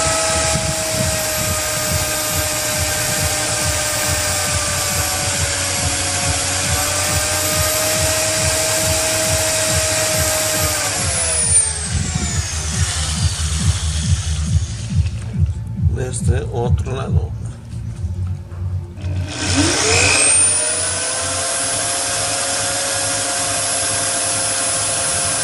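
An electric drill whines steadily.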